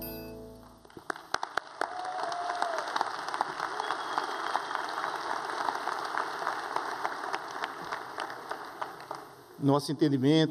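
A crowd applauds in a large hall.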